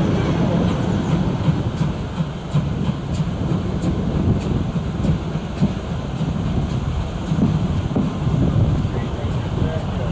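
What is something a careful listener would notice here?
A steam locomotive puffs rhythmically ahead.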